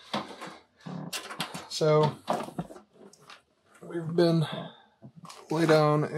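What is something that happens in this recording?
A computer case is lifted and set down with a dull thump.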